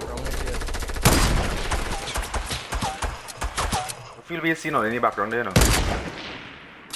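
Game building sounds clatter with sharp wooden knocks.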